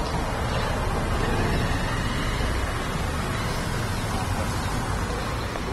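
A woman speaks softly into a microphone, close by.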